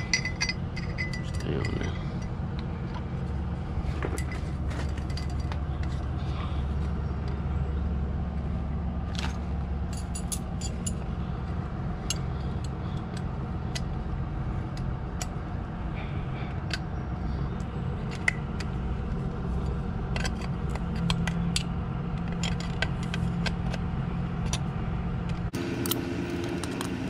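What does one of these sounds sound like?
Metal tools click and clink against a wheel hub.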